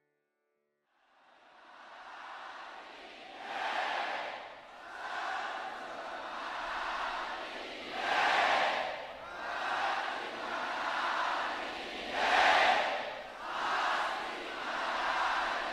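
A large crowd cheers and roars in waves outdoors.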